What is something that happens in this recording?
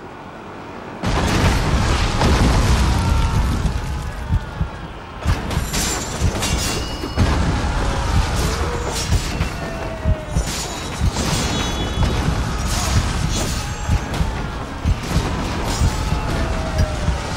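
A large crowd of fighters roars in battle.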